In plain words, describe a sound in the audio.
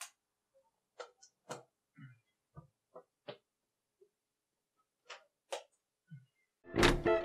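Soft knocks and rustles come as a young man moves about nearby.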